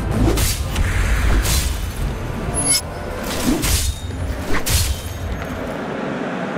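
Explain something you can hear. Sword blows land with heavy thuds and clashes.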